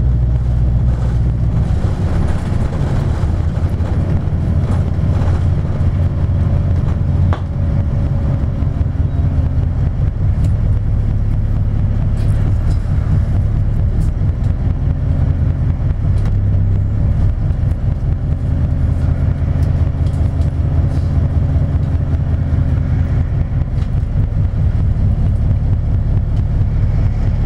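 An engine rumbles steadily from inside a moving vehicle.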